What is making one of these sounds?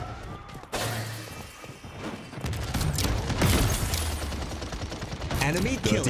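An energy gun fires in quick zapping bursts.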